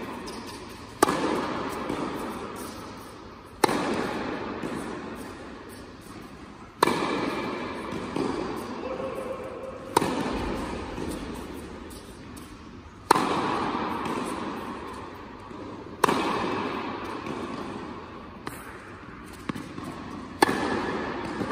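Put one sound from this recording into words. Tennis balls are struck hard with a racket, each hit ringing out in a large echoing hall.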